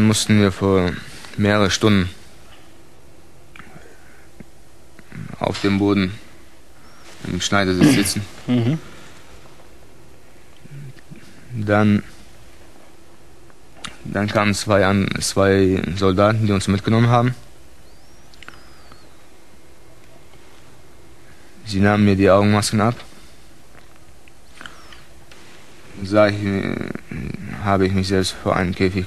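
A man speaks calmly in short bursts with pauses, close to a microphone.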